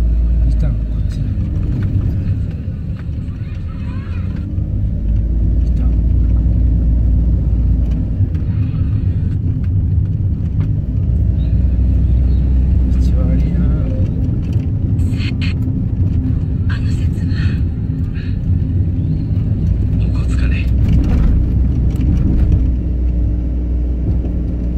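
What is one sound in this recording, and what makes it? A car engine hums from inside while driving.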